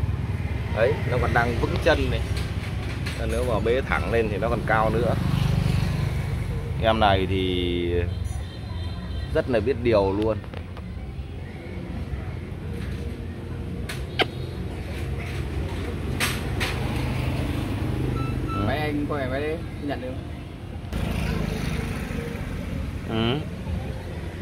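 A man talks close by in a relaxed voice.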